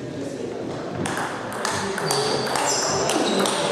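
A table tennis ball clicks sharply off paddles and a table in an echoing hall.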